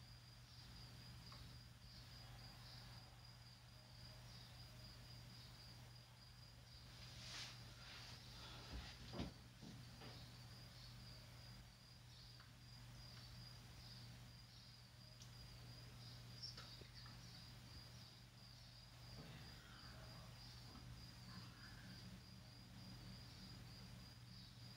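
A table tennis ball clicks back and forth off paddles and the table, heard faintly through a television.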